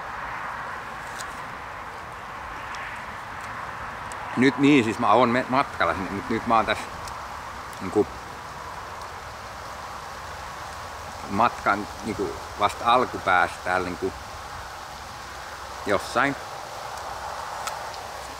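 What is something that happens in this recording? A man bites into and chews an apple.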